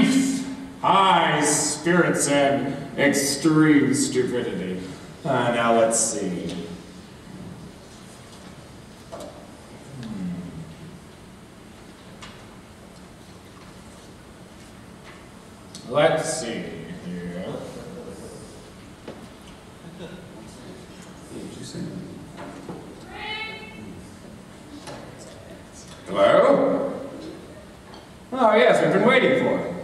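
Young men speak loudly, heard from a distance in a large hall.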